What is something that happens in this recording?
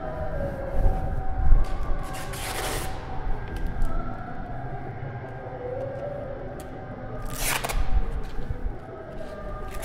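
A metal object scrapes along wooden steps.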